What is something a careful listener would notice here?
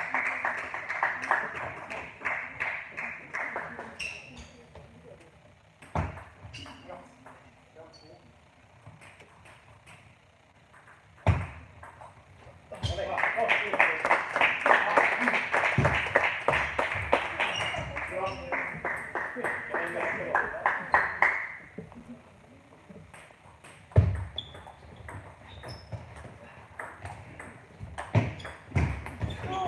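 A ping-pong ball clicks back and forth on a table and paddles in a large, echoing hall.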